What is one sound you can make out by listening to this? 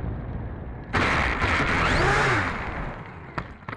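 Wheels rumble on tarmac as the model plane lands.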